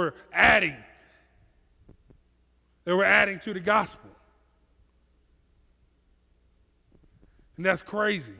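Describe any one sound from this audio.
A man speaks with animation through a headset microphone, with pauses.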